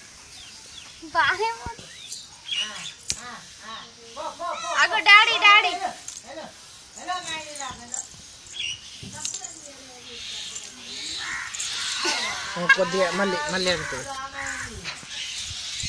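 A woman speaks to a toddler close by in a lively, sing-song voice.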